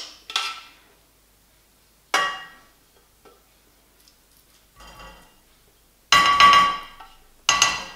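A spatula scrapes against the inside of a metal pot.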